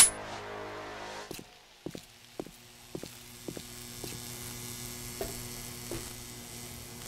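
Footsteps thud on a hard floor.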